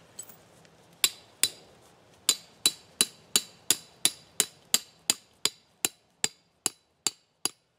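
A hammer taps sharply on metal in a quick, steady rhythm.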